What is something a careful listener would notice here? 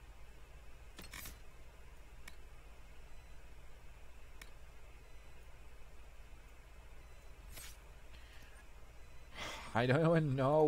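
Soft interface whooshes and clicks sound as menu cards slide.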